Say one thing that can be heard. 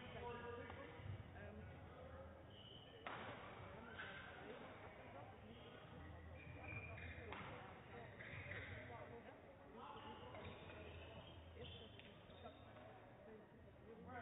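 A young woman and a young man talk quietly to each other in a large echoing hall.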